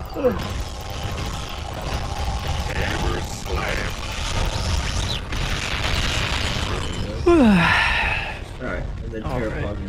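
Video game fighting effects crash and blast in quick bursts.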